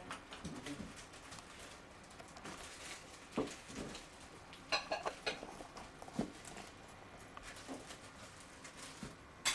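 Dishes and cutlery clink on a table.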